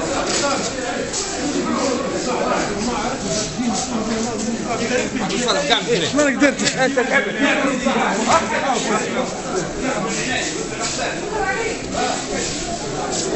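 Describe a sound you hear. A crowd of men talks and calls out at once in an echoing hall.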